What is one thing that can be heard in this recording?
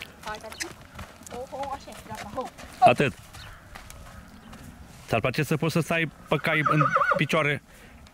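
Horses' hooves thud softly on dry dirt.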